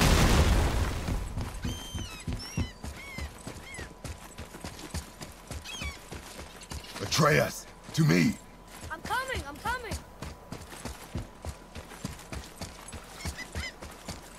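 Heavy footsteps run on stone.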